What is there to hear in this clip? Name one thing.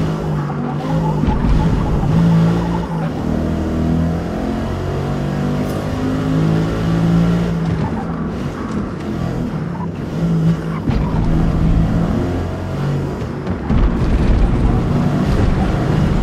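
Tyres squeal on the track through corners.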